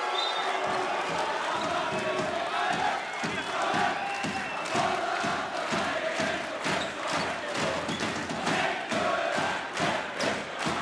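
A large crowd cheers loudly in an echoing hall.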